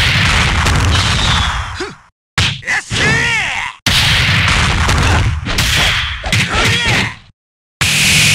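Heavy blows and whooshing strikes land in quick bursts.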